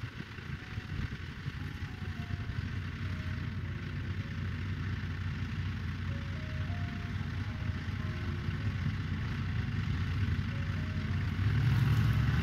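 A diesel farm tractor idles outdoors.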